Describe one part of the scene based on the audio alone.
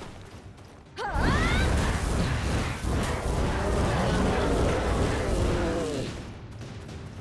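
Weapons clash and slash in a loud fight.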